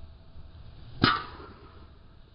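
A second golf driver strikes a ball off a tee with a sharp crack.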